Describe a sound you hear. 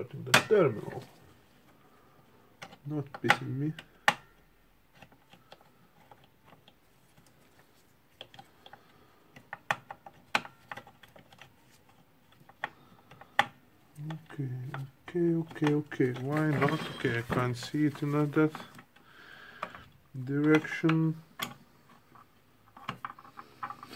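Plastic parts click and knock.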